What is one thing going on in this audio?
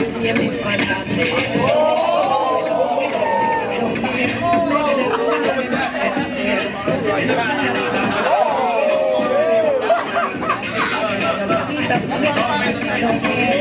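A crowd of young men and women shouts and cheers loudly.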